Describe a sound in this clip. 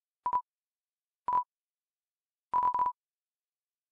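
Short electronic blips chirp in quick bursts.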